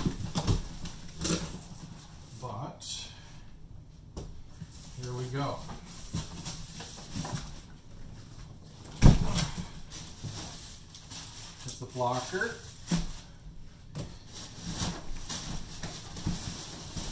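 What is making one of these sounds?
Cardboard scrapes and thumps as a box is opened.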